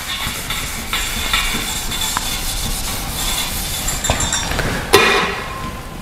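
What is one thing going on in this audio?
An eraser rubs across a whiteboard.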